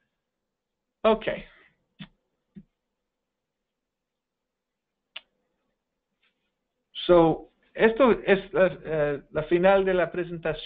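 A man speaks calmly into a microphone, heard as if through an online call.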